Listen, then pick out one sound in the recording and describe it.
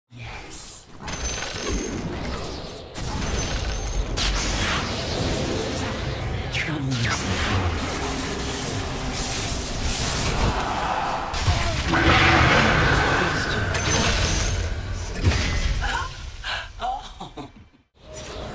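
Magic spells whoosh and crackle amid clashing combat sounds.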